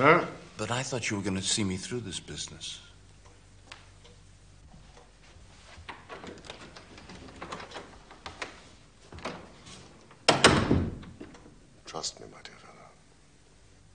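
A middle-aged man speaks calmly and clearly.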